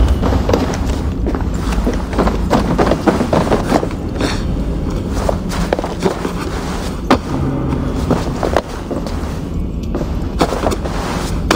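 Hands scrape and grab while climbing.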